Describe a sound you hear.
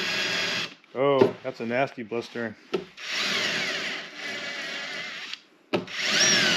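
A cordless drill whirs as it bores into wood.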